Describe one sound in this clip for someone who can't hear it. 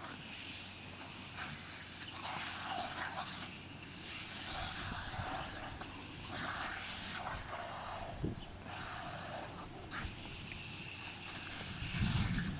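Water sprays and hisses from a sprinkler.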